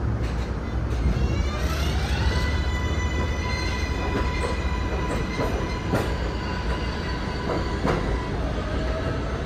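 A subway train pulls away, its motor whining upward in pitch.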